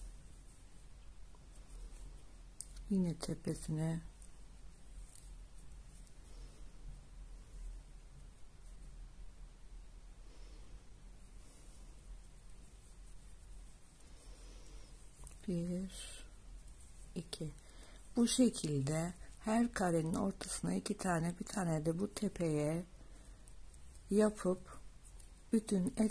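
Yarn rustles softly as a crochet hook pulls it through loops.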